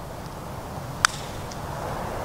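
A golf putter taps a ball with a light click.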